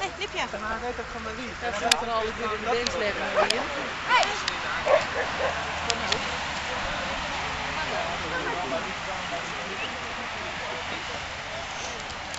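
Dogs splash and wade through shallow water.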